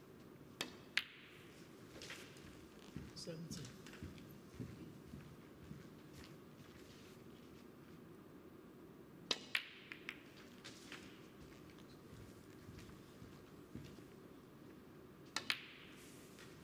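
Snooker balls click sharply together.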